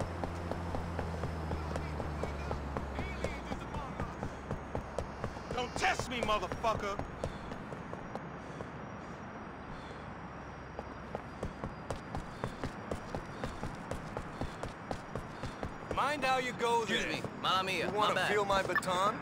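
Footsteps slap quickly on pavement as someone runs.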